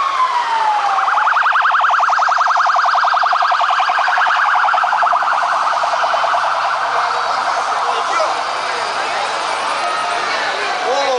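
A police siren yelps rapidly close by.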